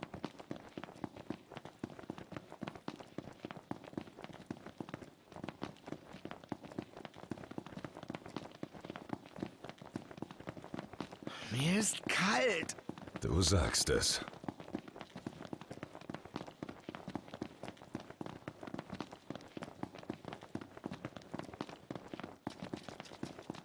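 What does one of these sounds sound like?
Running footsteps patter quickly on a hard road, echoing in a tunnel.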